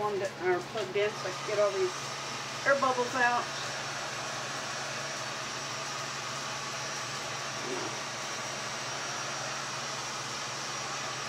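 A heat gun blows with a steady whooshing hiss.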